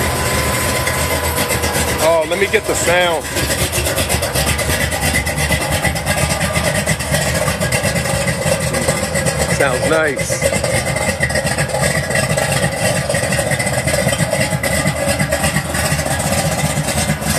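A car engine idles with a steady, rough rumble close by.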